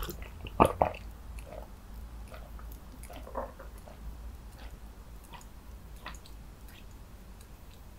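A man gulps down a drink.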